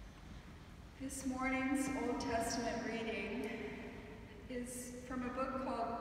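A middle-aged woman sings slowly into a microphone in a large echoing hall.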